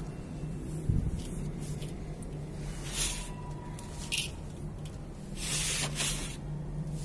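Hands scoop and rub dry, gritty soil, which rustles and hisses.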